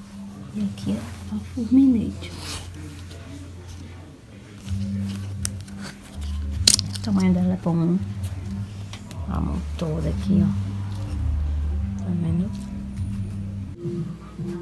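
A plastic brush is handled and rubs against cloth.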